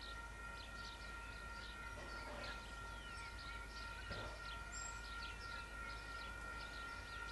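A level crossing bell rings steadily.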